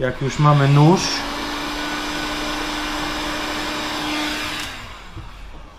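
A heat gun blows with a steady whooshing hum.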